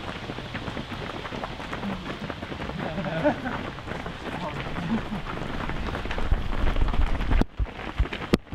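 A group of runners' feet patter and crunch on a gravel track.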